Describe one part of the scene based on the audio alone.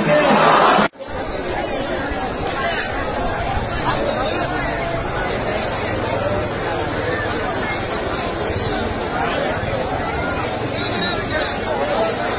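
A large crowd murmurs and calls out outdoors.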